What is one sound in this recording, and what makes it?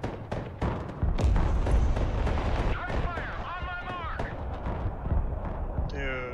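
Heavy explosions boom with a deep rumble.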